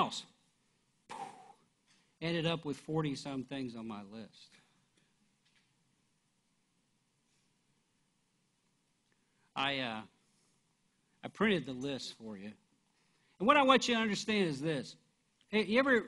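A middle-aged man speaks through a microphone, with long pauses.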